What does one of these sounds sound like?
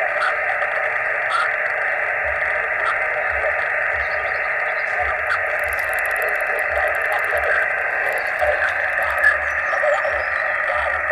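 A radio hisses with steady, muffled static while its dial is tuned.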